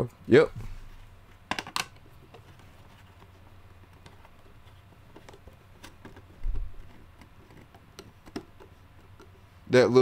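Small plastic parts click and rattle in a man's hands.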